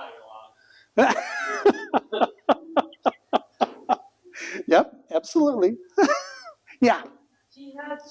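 An older man laughs loudly in bursts.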